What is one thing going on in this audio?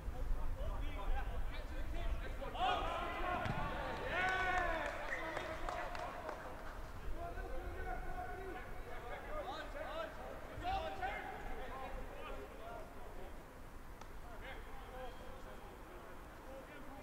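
Young men shout to one another from across an open outdoor pitch.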